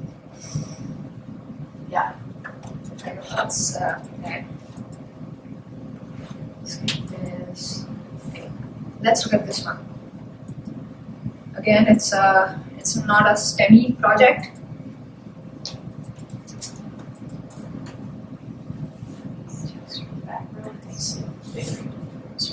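A young woman speaks calmly to an audience.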